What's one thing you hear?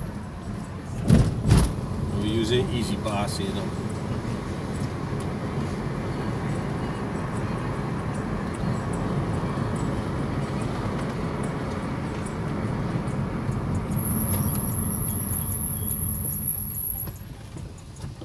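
Tyres rumble on the road surface and quieten as the car slows.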